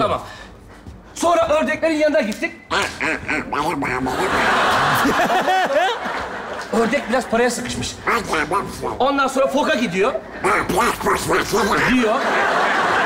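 A man argues loudly.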